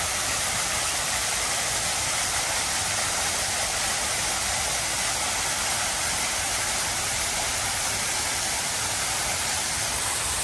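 Fountain water splashes and rushes steadily into a pool.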